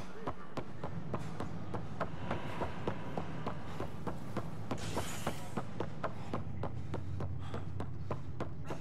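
Quick footsteps run steadily across a hard floor.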